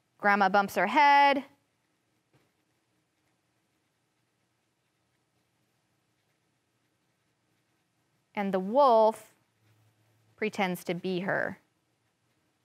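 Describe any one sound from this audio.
A young woman reads aloud expressively into a close microphone, with long pauses.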